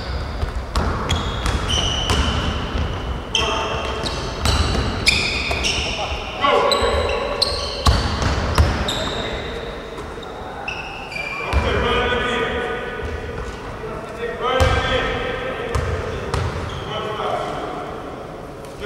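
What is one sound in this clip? Sneakers squeak sharply on a hard court in an echoing hall.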